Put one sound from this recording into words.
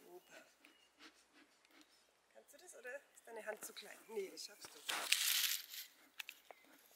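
Paper rustles and crinkles as it is stuffed into a bee smoker.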